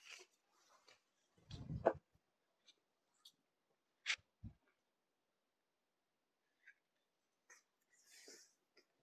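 Silk fabric rustles and swishes as it is unfolded and spread out.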